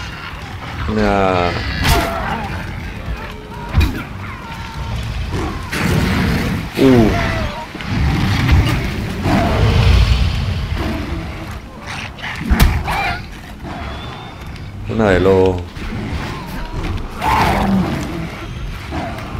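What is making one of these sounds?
A young man talks through a headset microphone, close up.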